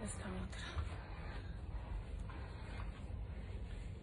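Fabric rustles in a woman's hands.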